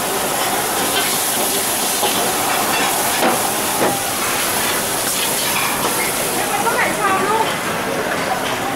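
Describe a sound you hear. A metal ladle scrapes and clanks against a wok.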